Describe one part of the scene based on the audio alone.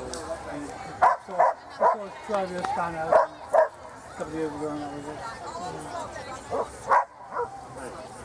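A woman calls out loudly close by.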